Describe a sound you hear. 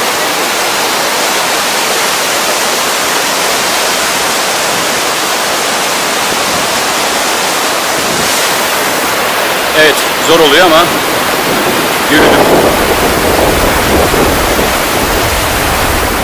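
Rapids rush and roar loudly outdoors.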